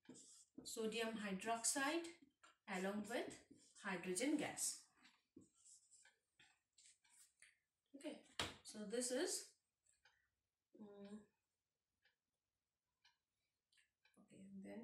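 A woman speaks calmly and clearly, close by, as if explaining a lesson.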